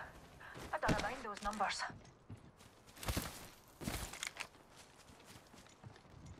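Heavy footsteps thud on hard ground.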